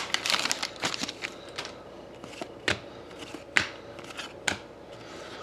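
Cards snap and flick against one another.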